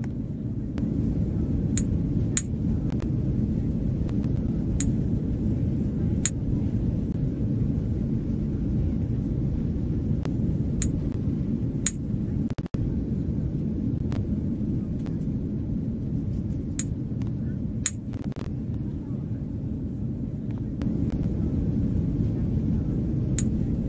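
A steady low airplane cabin hum drones throughout.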